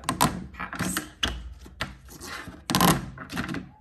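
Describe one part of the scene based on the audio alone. A rubbery toy flips over and slaps down on a hard surface.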